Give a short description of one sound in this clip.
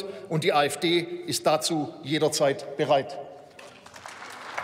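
A man speaks forcefully into a microphone in a large hall.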